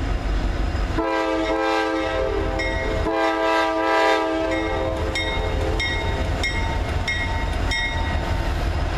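A diesel locomotive's multi-chime air horn blasts several times.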